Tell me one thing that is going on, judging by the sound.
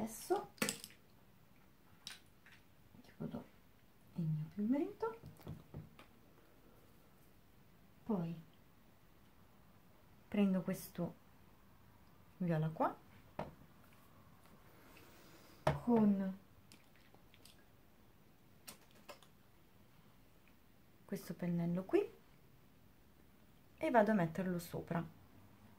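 A young woman speaks calmly and close by, in short phrases.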